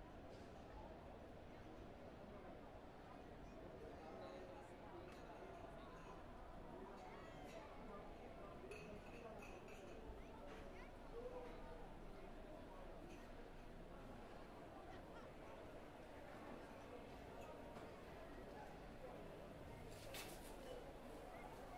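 A steady murmur of distant voices fills a large room.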